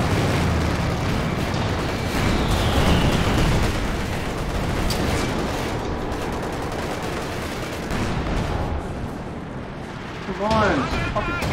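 Explosions boom and rumble in a game's battle.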